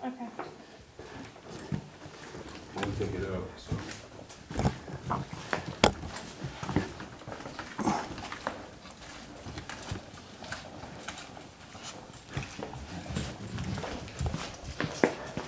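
Footsteps walk slowly along a hard floor in an echoing corridor.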